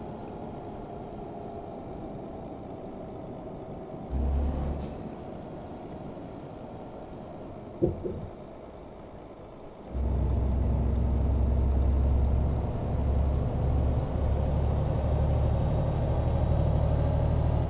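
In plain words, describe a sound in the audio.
A truck engine hums steadily, growing louder as it speeds up.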